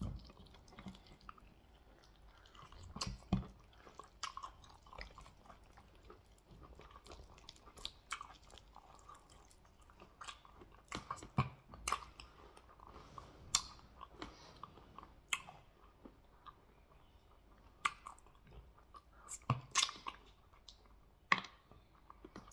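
Wet meat squelches and tears between fingers.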